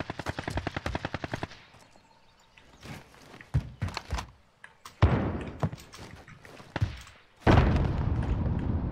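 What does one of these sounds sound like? Rapid gunfire rattles in quick bursts, with single loud shots.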